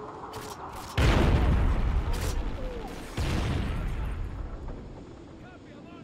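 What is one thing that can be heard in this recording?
Explosions boom close by and rumble away.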